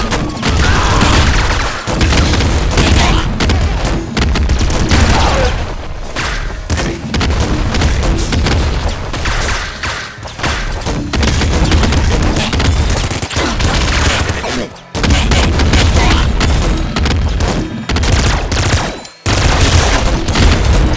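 Rapid electronic gunfire crackles in a video game.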